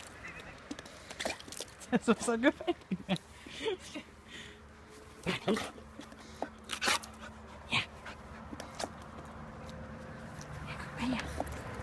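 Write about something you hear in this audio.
A dog snaps and laps at a jet of water.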